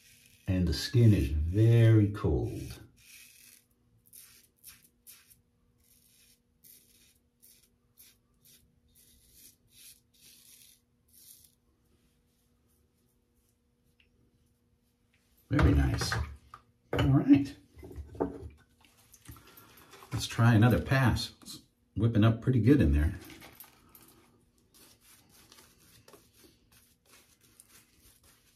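A razor scrapes softly over stubble in short strokes.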